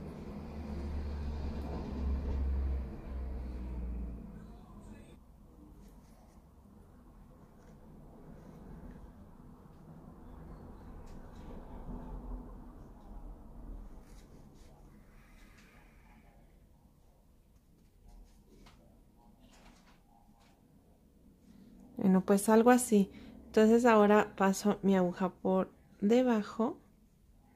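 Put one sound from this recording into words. Yarn softly rustles as a needle pulls it through crochet stitches.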